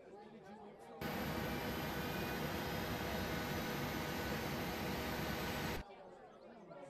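Jet engines roar steadily close by.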